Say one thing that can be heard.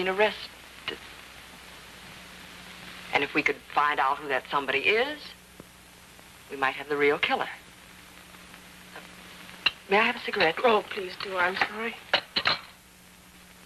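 A young woman speaks calmly and earnestly.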